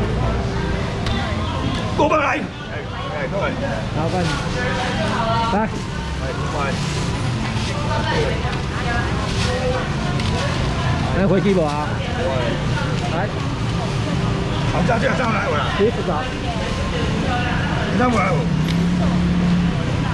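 Several men talk with animation close by.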